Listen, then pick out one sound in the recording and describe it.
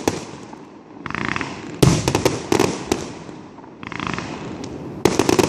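Fireworks whoosh and hiss as they launch.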